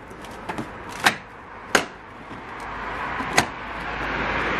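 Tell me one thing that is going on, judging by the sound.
Plastic clips snap loudly as a grille is pried loose.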